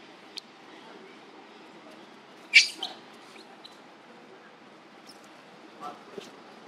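Young monkeys scamper over dry leaves on the ground.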